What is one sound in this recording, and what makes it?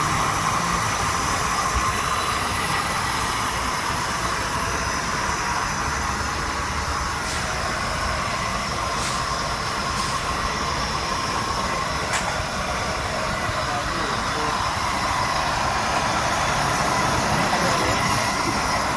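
A gas burner flame roars steadily.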